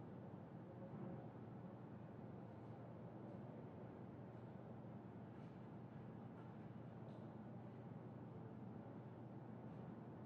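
A sports car engine idles in a low, steady rumble.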